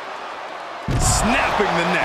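A body slams down hard onto the floor with a heavy thud.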